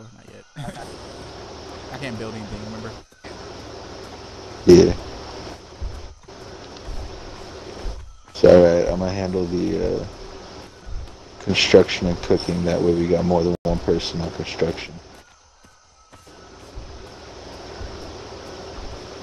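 Footsteps rustle through dense plants.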